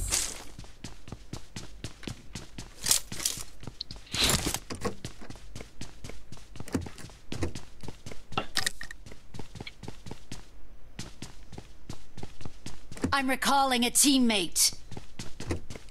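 Footsteps patter quickly and steadily on a hard floor.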